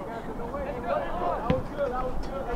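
A foot kicks a ball with a dull thump.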